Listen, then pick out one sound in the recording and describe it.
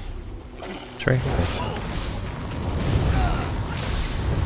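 Spell blasts and combat effects crash and whoosh loudly.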